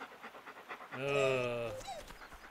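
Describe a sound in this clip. A dog barks loudly up close.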